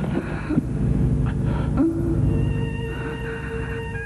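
A woman speaks faintly in a weak voice.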